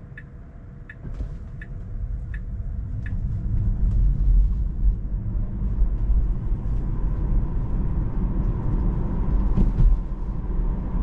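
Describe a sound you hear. Tyres rumble on the road as a car speeds up.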